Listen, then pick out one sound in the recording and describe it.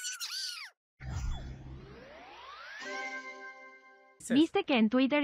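A video game plays a rising, sweeping chime for finishing a level.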